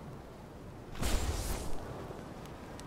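A heavy thump lands on stone.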